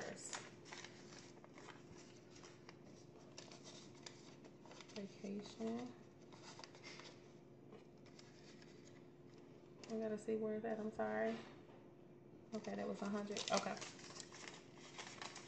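Paper bills rustle and flick as they are counted by hand.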